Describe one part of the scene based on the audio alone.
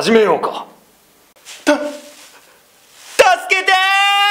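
A young man whimpers and cries out in fear.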